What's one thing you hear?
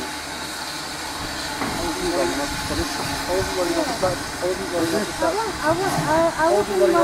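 A steam locomotive rumbles slowly along the track, drawing closer.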